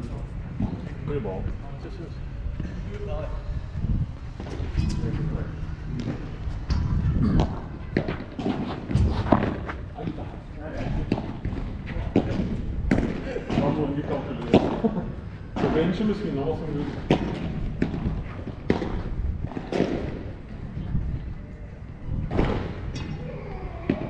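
Paddles strike a ball with sharp pops, back and forth.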